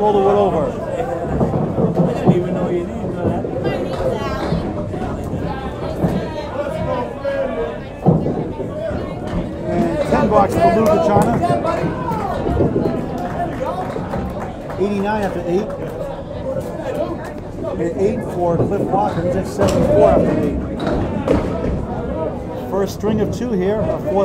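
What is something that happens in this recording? A crowd of men chatters in a large echoing hall.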